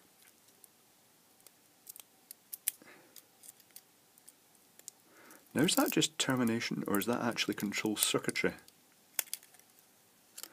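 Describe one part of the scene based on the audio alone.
Plastic wrap crinkles as it is peeled from a battery.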